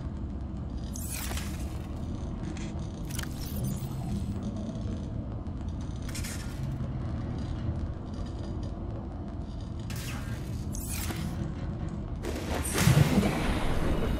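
Short whooshes sound as items are moved in and out of a storage locker.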